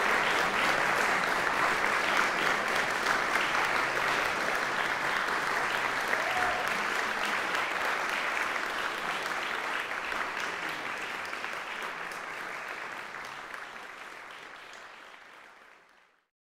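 An audience applauds steadily in a large hall, then fades away.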